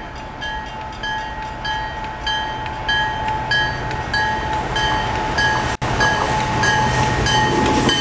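A train's bell rings steadily in quick even strokes.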